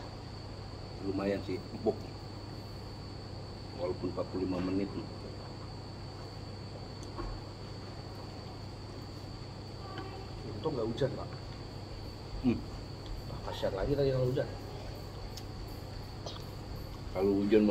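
Two men talk casually at close range.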